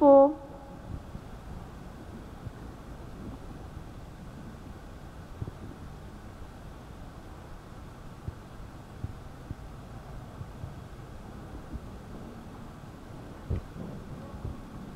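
A horse canters on sand far off, hooves thudding softly.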